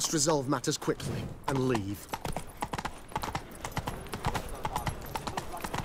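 Horse hooves clop on cobblestones.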